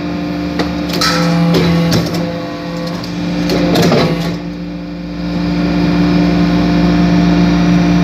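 A hydraulic briquetting press hums as it runs.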